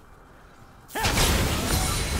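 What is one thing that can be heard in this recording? A magic bolt fires with a loud whooshing burst.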